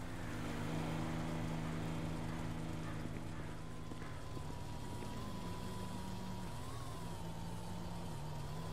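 A vehicle engine idles nearby.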